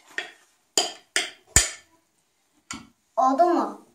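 A spoon scrapes and clinks against a metal bowl.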